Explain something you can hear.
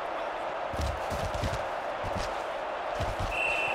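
A large crowd cheers steadily in a stadium.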